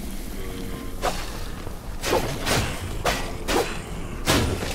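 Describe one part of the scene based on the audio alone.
Swords clash and strike in quick combat hits.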